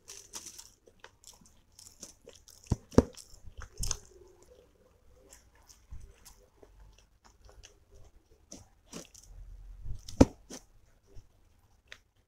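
Soft dumplings squish and tear between fingers.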